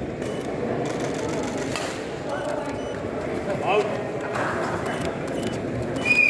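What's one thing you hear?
A badminton racket strikes a shuttlecock with sharp taps.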